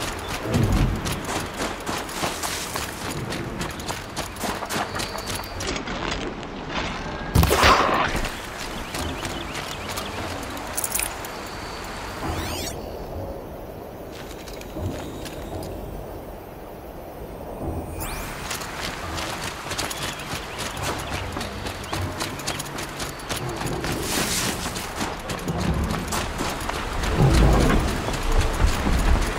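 Footsteps crunch quickly through snow and undergrowth.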